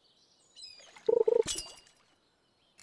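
A fish bites with a sudden sharp splash.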